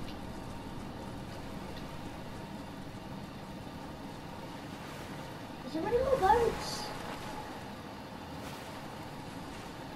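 Water splashes as a character wades through it.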